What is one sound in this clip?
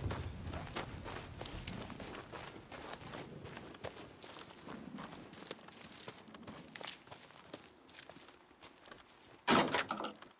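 Footsteps crunch through grass and undergrowth.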